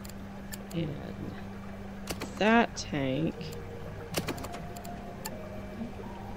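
Short interface clicks sound as menu items are picked.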